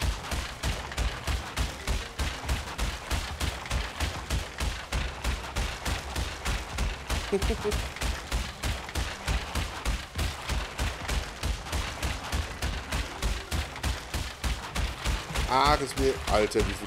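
Wooden crates smash and clatter rapidly, one after another.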